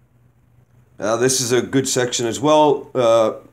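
A man reads aloud close by, clearly and deliberately.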